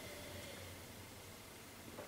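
A man sips from a glass.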